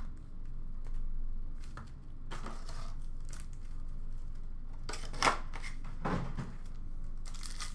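Foil card packs rustle as they are handled.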